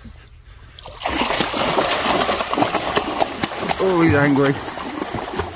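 A large fish thrashes at the surface, splashing water loudly.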